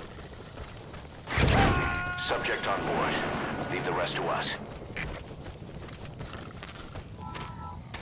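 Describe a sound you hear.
Footsteps run over dry dirt and grass.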